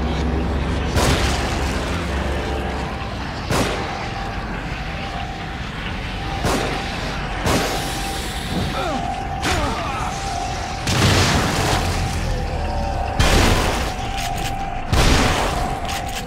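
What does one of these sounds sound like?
Gunshots boom loudly, one at a time, every second or two.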